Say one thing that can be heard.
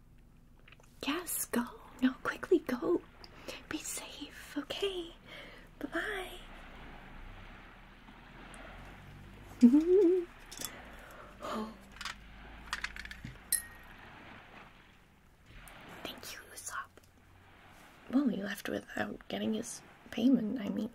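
A young woman speaks softly and closely into a microphone.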